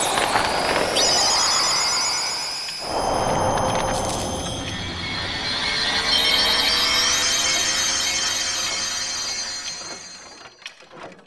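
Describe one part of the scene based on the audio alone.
A defeated creature dissolves with a shimmering, twinkling chime.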